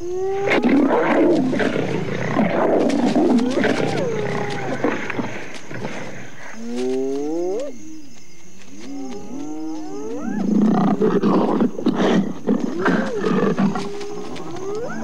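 Dogs growl and snarl.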